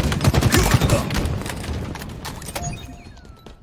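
Rapid gunfire cracks loudly.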